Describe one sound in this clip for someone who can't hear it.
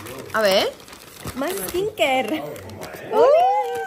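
Foil gift wrap crinkles and rustles as it is torn open.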